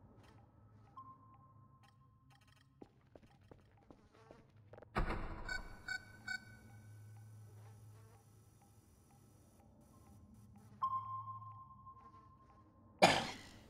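A computer terminal gives out a steady electronic beep that cuts off abruptly.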